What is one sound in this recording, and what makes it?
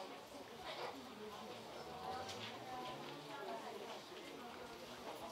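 Young girls speak and sing on a stage in a large echoing hall.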